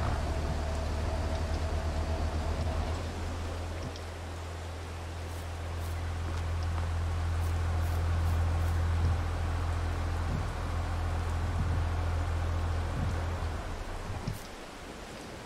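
A heavy diesel engine idles with a low, steady rumble.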